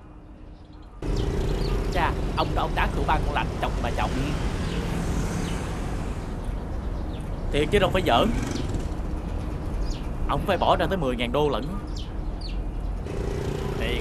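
Young men talk excitedly, close by.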